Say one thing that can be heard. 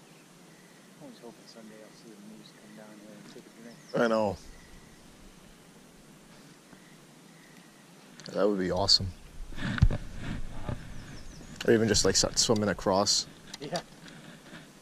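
A man speaks casually close by.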